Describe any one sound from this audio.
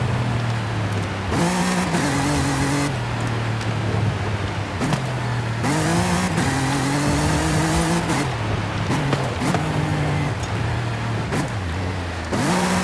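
Tyres crunch and slide on a dirt track.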